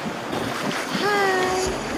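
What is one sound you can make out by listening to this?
A young woman exclaims excitedly close by.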